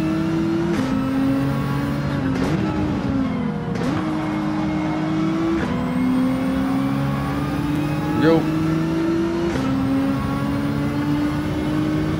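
A racing car engine roars steadily, its pitch dropping and climbing as gears shift.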